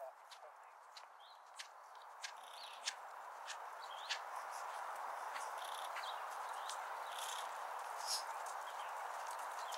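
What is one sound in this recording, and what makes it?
A horse's hooves thud softly on sand in a steady trot.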